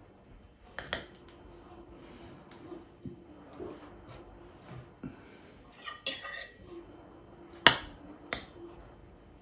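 A spoon clinks against a plate and a pot.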